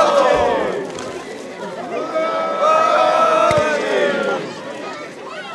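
A group of men chant loudly together outdoors.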